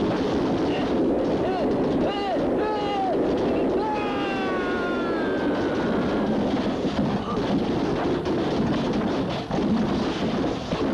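Earth and rocks rumble and roar as they slide down a slope.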